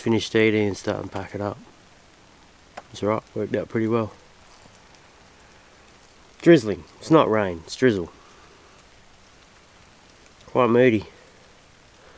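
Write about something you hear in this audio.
A man speaks close by in short, calm bursts.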